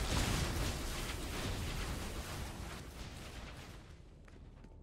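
Lightning crackles and buzzes loudly.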